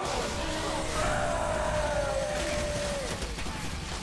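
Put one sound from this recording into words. An explosion booms and debris scatters.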